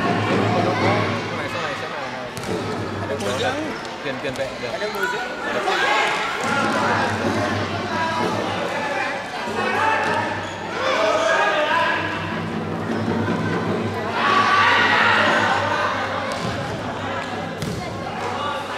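A ball thuds as it is kicked on a hard floor.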